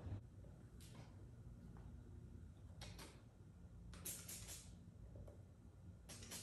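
A spray bottle hisses in short bursts.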